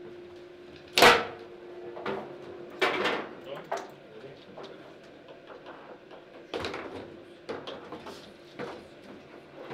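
A foosball ball cracks sharply against plastic figures and the table walls.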